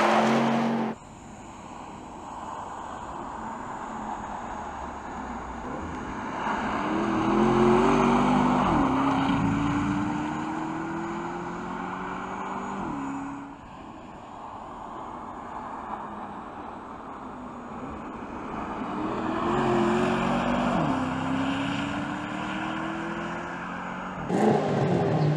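A car engine roars loudly, revving up and down as the car speeds past.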